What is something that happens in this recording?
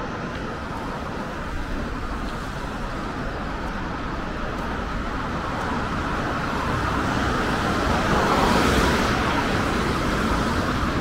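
Car tyres hiss on a wet road as traffic passes.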